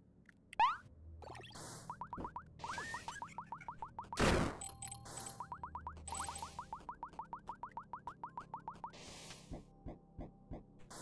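Quick, light footsteps patter in a retro video game.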